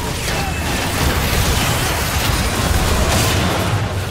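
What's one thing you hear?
A large monster roars as it is slain.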